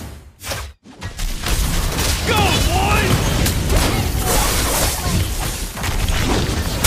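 Game explosions and hits burst loudly in a busy battle.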